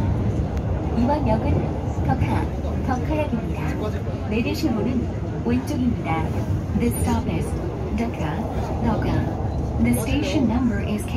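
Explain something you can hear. A recorded voice makes an announcement over a loudspeaker.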